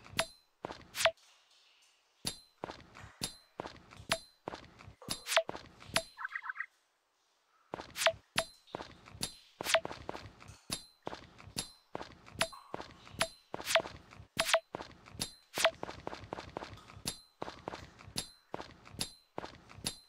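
A hammer strikes rocks again and again with sharp cracks.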